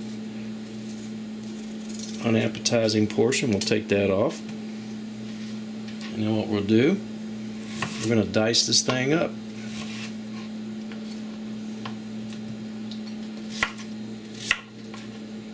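A knife cuts through a vegetable.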